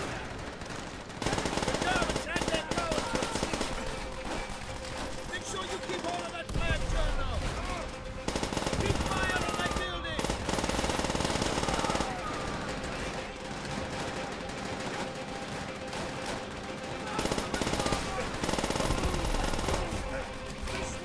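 Rifle gunfire cracks in rapid bursts.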